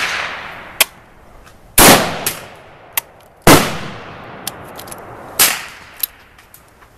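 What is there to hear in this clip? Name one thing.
Rifle shots crack loudly outdoors and echo away.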